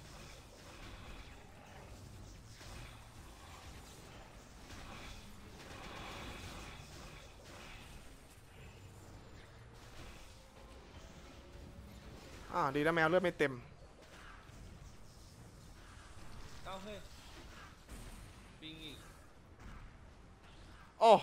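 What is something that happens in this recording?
Magic blasts and sword strikes clash and whoosh in a fantasy battle.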